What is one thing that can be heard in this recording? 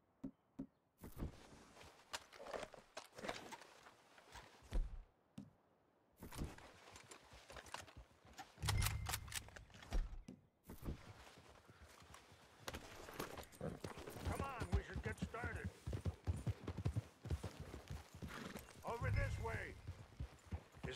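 A man talks with animation, close to a microphone.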